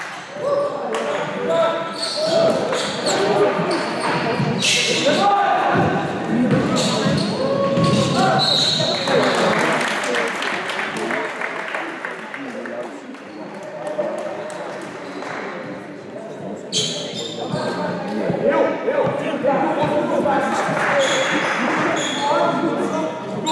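Young men call out to each other in an echoing hall.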